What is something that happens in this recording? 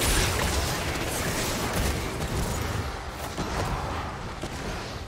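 Game spells crackle and blast in a fast fight.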